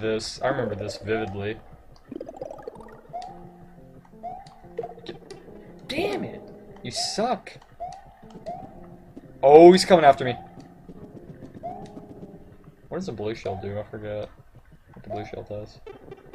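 Short rising electronic blips sound as a game character jumps.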